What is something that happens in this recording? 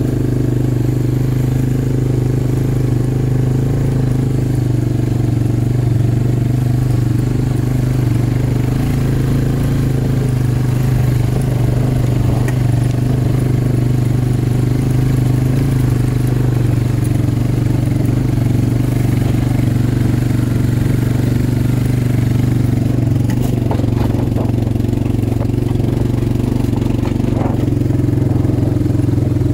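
Tyres crunch over stones and gravel.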